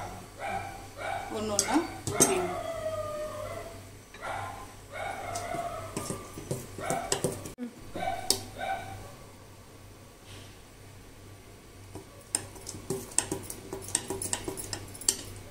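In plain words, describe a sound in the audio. Batter sizzles and crackles in a hot metal pan.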